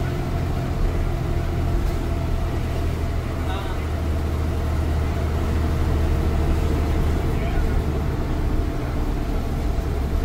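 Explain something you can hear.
A bus engine rumbles and drones steadily from inside the cabin.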